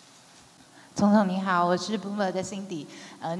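A woman asks a question through a microphone.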